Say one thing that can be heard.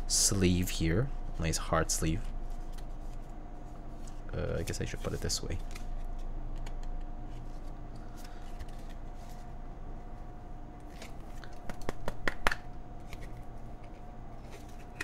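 Small plastic parts click and tap as hands handle them.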